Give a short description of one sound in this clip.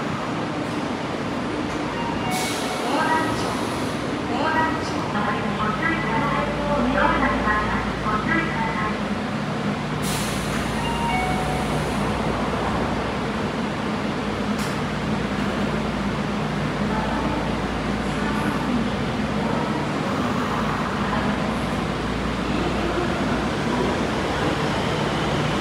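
A subway train rolls slowly along the platform with a low, steady electric hum.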